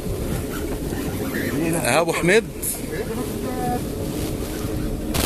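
Wind and water rush steadily past a moving boat.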